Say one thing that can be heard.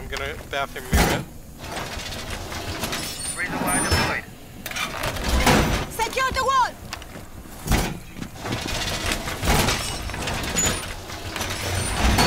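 A heavy metal panel clanks and bangs into place against a wall.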